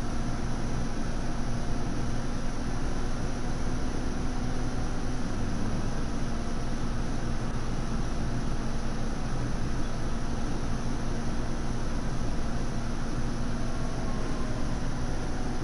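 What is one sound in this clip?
Tyres roll on the road with a steady rush.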